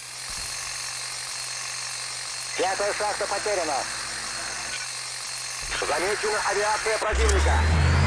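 A gun fires rapid bursts at close range.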